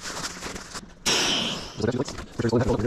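Air hisses out of an opened valve.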